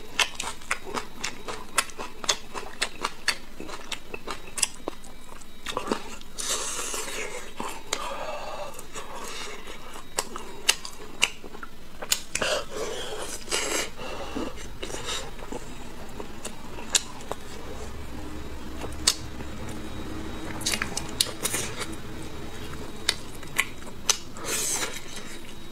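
A man tears braised meat from a bone with his hands.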